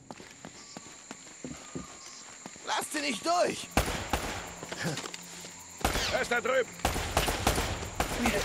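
Footsteps crunch over stone and leaves.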